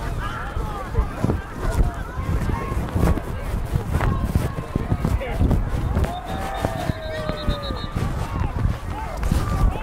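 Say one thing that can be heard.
Wind rumbles across a microphone.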